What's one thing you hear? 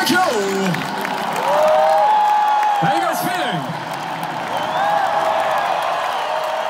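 A huge crowd cheers and shouts.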